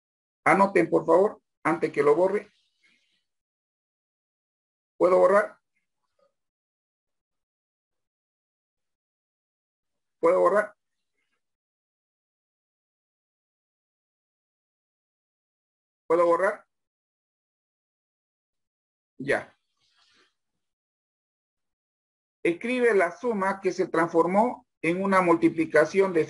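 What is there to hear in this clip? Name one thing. A man speaks calmly in short bursts through an online call.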